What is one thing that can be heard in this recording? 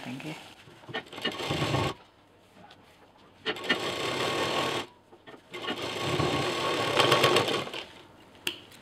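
A sewing machine stitches in short fast bursts.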